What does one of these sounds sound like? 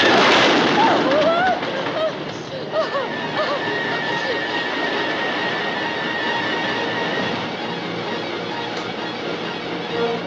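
A roller coaster rattles and rumbles along its track.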